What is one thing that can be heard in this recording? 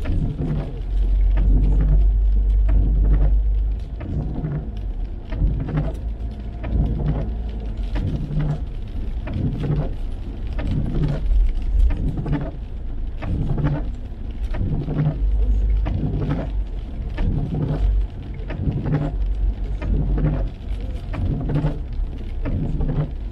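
Tyres rumble steadily on a wet road from inside a moving car.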